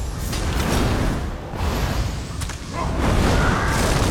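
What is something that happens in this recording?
Ice magic hisses and roars loudly.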